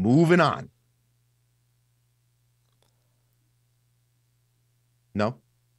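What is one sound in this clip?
A man speaks with animation through a microphone, over an online call.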